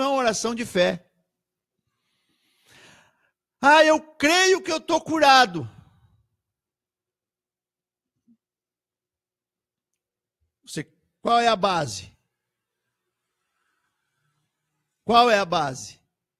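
A man talks with animation into a close microphone, in short bursts with pauses.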